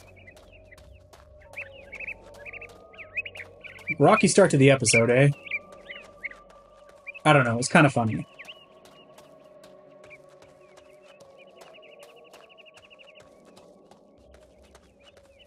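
Armoured footsteps thud quickly over grass.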